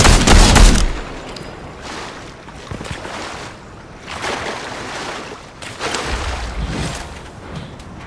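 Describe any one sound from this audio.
Water splashes as a swimmer paddles through it.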